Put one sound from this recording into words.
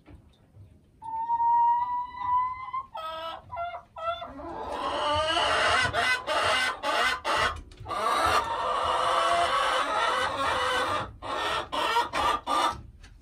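A hen clucks and squawks loudly up close.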